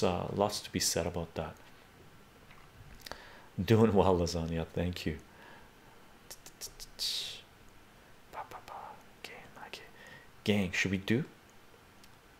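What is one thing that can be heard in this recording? A middle-aged man talks with animation into a nearby microphone, pausing between phrases.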